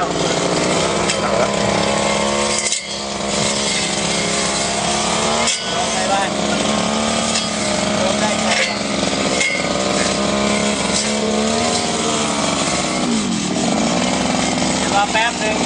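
A string trimmer engine buzzes loudly and steadily.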